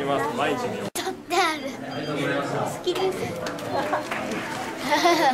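Young girls laugh excitedly close by.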